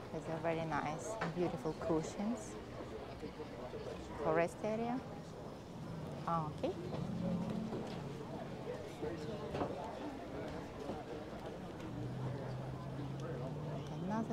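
Adult men and women talk casually nearby, among a murmuring crowd outdoors.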